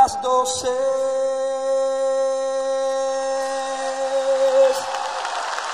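A man sings a long held note through a microphone.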